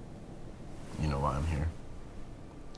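A young man speaks quietly in a low voice.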